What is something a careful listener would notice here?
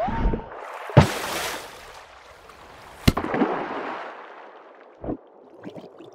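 A small ball knocks against a wooden door with sharp thuds.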